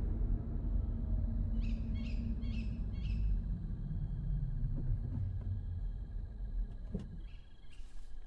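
A car engine rumbles low and then dies away.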